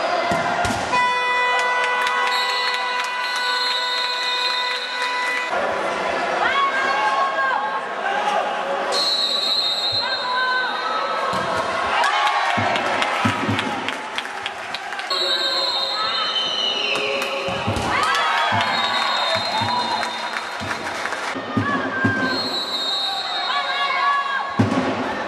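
A crowd of spectators cheers and chants loudly in an echoing indoor hall.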